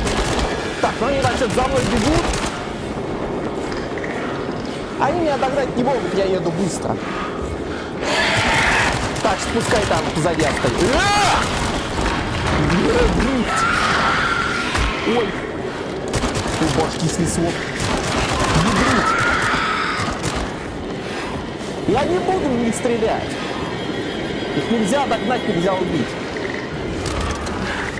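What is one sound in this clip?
A man talks and exclaims with animation close to a microphone.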